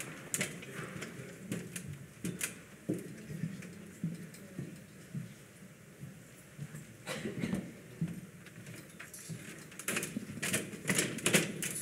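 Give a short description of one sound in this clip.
Footsteps walk across a stage.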